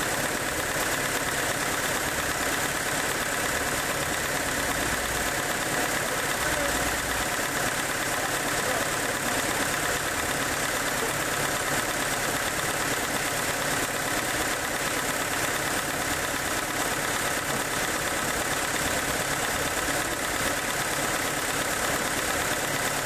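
A sawmill machine runs with a steady, loud whirring drone.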